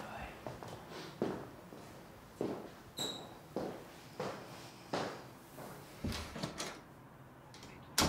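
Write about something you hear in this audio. An elderly man snores softly in rhythmic breaths.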